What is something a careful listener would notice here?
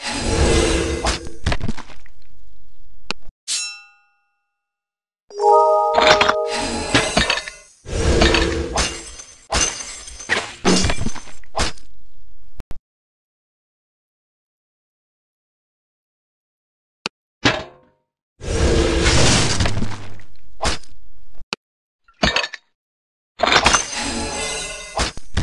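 Game sound effects of hits and magic blasts burst in bursts.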